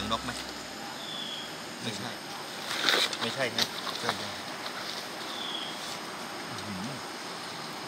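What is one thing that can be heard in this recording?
A man talks calmly nearby, in short bursts.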